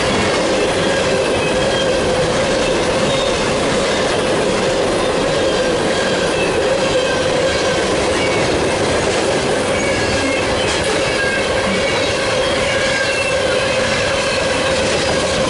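Train wheels squeal faintly against the rails.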